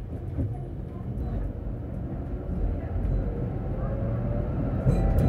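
A tram rumbles along its rails with a steady low drone.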